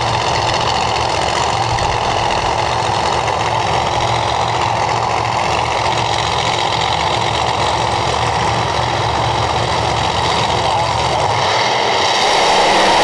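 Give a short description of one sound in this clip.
Drag racing engines idle with a loud, rough rumble.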